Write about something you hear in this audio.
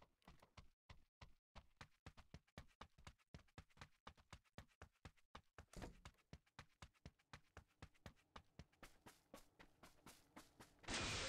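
Running footsteps thud on dirt.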